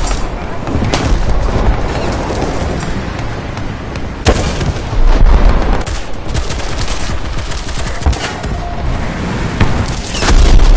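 Gunfire cracks and bangs sharply.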